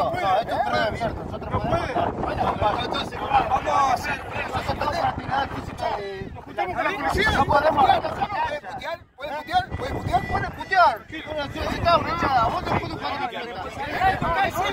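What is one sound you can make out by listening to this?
Several men argue loudly over each other, close by.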